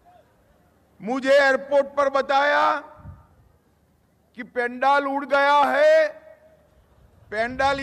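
A man speaks forcefully through a microphone and loudspeakers.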